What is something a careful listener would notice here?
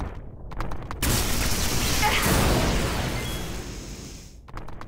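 Lightning crackles loudly.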